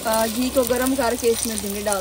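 Chopped vegetables tumble into a metal pan.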